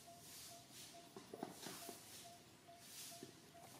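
Leaves rustle as a monkey shifts on a branch.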